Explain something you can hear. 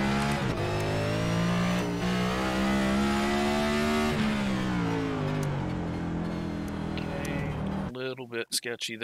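A race car engine roars loudly, rising and falling in pitch as it shifts gears.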